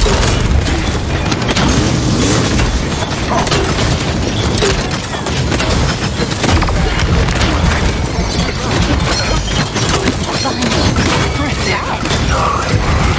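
Electric zaps crackle loudly.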